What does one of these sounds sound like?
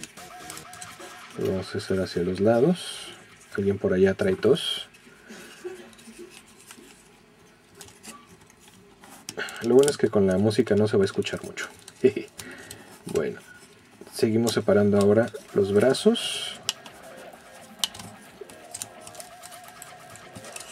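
Plastic toy parts click and rattle as they are handled.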